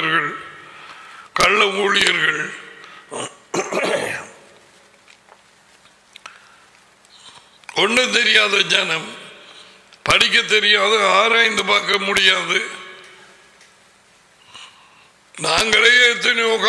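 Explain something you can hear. An elderly man speaks forcefully into a close microphone, in bursts with pauses.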